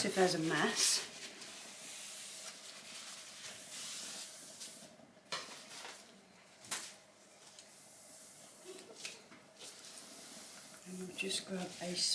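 A cloth rubs and wipes across a hard surface.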